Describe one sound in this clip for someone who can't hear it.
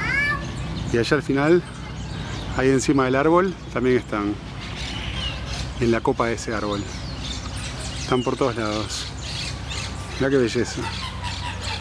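Peacocks give loud, wailing calls outdoors.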